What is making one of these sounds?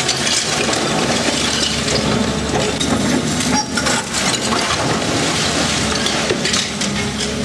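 A diesel engine rumbles steadily.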